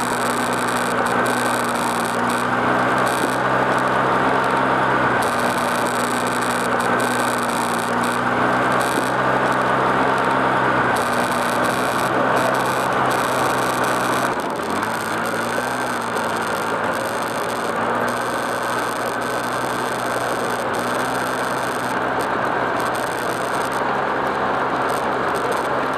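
An engine hums steadily nearby.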